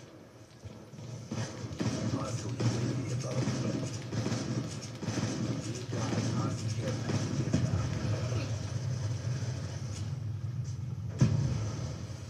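Rapid gunfire crackles from a video game, heard through a television speaker.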